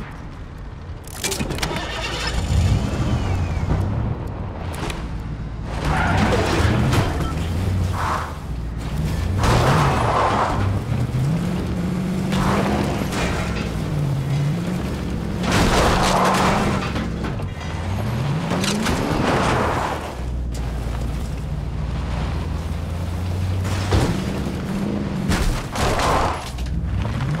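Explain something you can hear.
A car engine revs and roars as the car speeds along.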